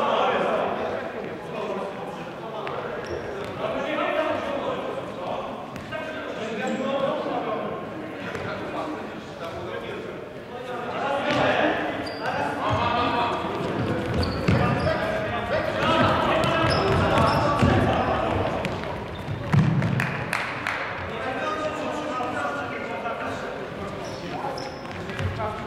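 Men shout and call to each other in a large echoing hall.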